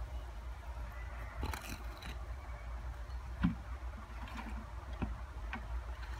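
A bucket clunks as it is set down.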